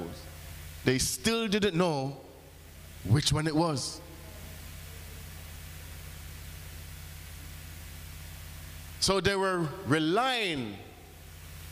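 A man speaks with animation through a microphone, in short bursts with pauses.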